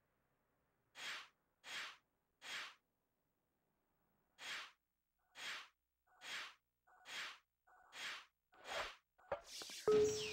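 A game gadget fires with short whooshing bursts, again and again.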